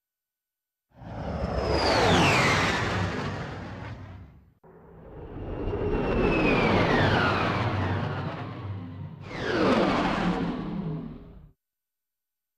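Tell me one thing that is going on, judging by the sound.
A small spacecraft whooshes past several times, rising and falling in pitch.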